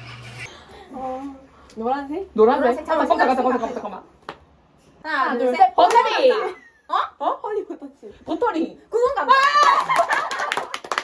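Several women talk with animation close by.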